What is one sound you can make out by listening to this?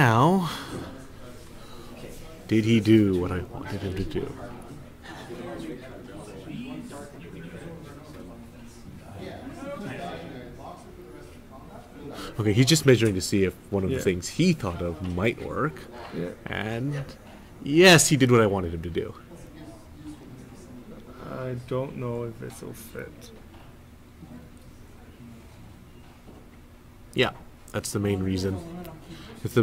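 A man talks casually nearby, heard through a microphone.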